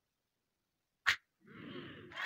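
An open-handed slap smacks against a face.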